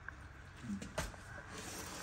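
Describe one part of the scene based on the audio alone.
A pot scrapes on a stovetop.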